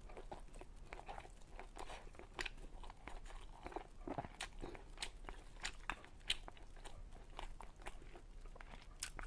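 A young woman chews food wetly, close to a microphone.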